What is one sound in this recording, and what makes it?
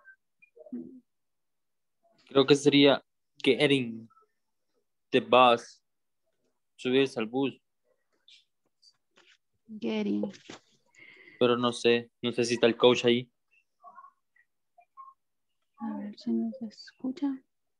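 A young man speaks calmly and clearly over an online call, with short pauses.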